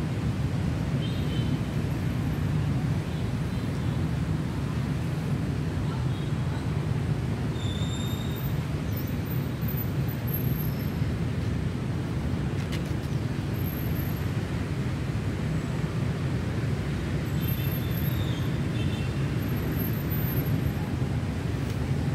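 Wind blows steadily outdoors with a low rumble.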